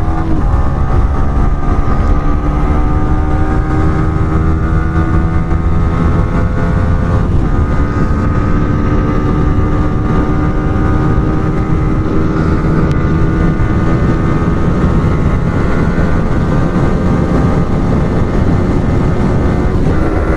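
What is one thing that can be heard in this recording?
A motorcycle engine drones loudly at high speed, its pitch rising slowly as it accelerates.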